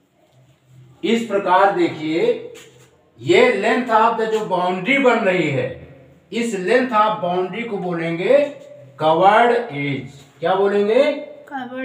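A man speaks clearly and steadily into a close microphone.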